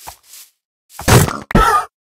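A horse snorts nearby.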